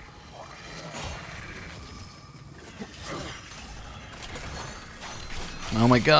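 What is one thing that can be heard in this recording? A blade swooshes through the air.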